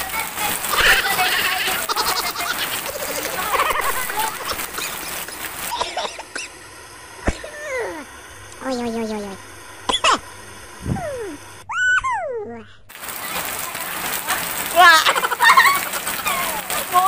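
Heavy rain falls and splashes on concrete outdoors.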